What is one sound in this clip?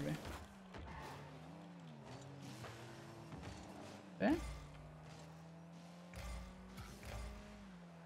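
A video game car's engine hums and roars as it boosts.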